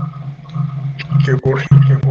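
A man speaks over a phone recording.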